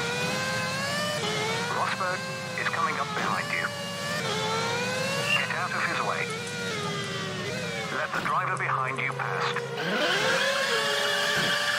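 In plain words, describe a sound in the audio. A racing car engine whines steadily, rising and falling in pitch as it speeds up and slows down.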